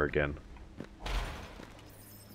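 A sharp energy blast fires.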